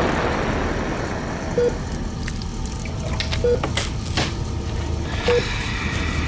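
Liquid pours from a plastic bottle and splashes into a shallow tray.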